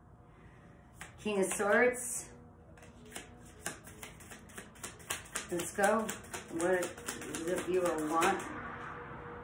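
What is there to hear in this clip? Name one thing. Cards riffle and slap as they are shuffled.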